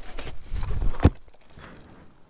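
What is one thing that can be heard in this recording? A motorcycle falls over onto the dirt with a heavy thud.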